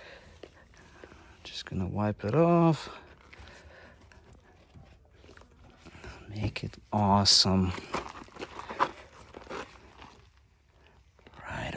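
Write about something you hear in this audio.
A cloth rubs against a car's paint.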